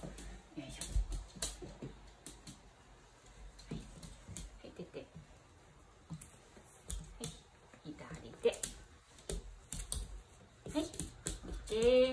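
A dog's claws tap on a hard floor.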